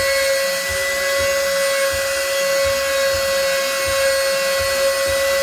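A power tool whines steadily as it cuts into wood.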